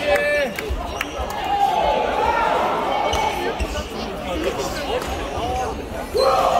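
Many people talk and call out in the background of the echoing hall.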